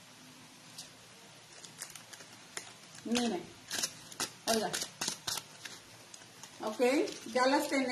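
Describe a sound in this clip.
Stiff paper crinkles and rustles in hands.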